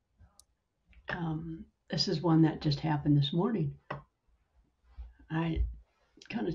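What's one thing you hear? A middle-aged woman speaks calmly over an online call.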